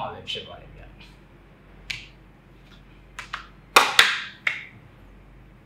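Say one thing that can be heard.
Cards tap and rustle as a man shuffles them.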